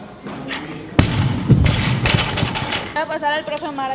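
A loaded barbell crashes down onto a rubber platform with a heavy thud and bounces.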